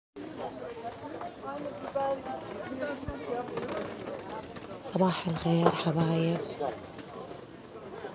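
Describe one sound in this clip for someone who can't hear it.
Many people chatter nearby outdoors.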